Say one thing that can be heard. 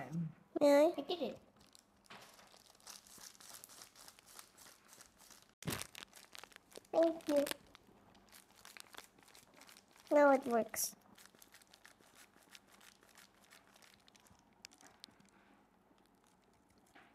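Plastic gloves crinkle and rustle close by.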